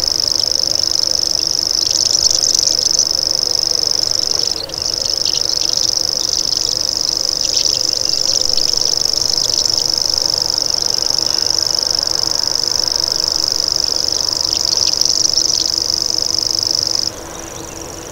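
A small bird sings a long, steady, high-pitched insect-like reeling trill close by.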